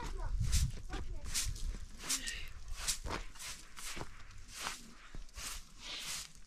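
A straw broom sweeps a rug with brisk scratching strokes.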